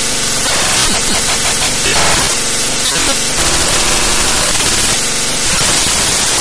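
Loud music plays steadily.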